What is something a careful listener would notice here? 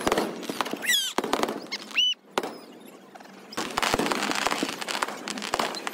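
Fireworks pop and crackle outdoors.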